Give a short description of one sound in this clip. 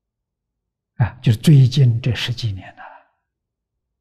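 An elderly man speaks calmly and warmly into a close microphone.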